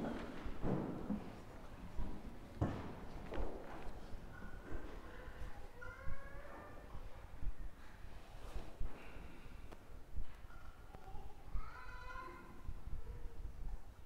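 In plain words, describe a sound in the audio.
A man speaks slowly and softly through a microphone in an echoing room.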